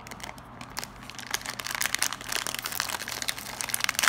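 A plastic wrapper tears open.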